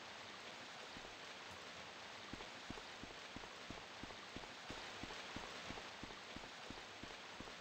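Footsteps tap steadily on a stone floor.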